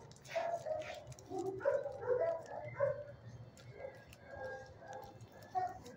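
A dog's claws tap on a hard floor as the dog walks away.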